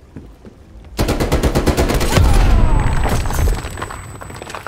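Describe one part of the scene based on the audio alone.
A rapid-fire gun shoots a loud burst of shots, echoing indoors.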